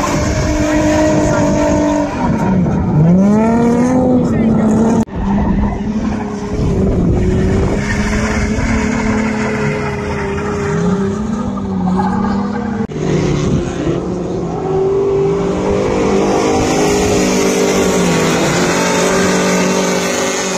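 Tyres screech on asphalt.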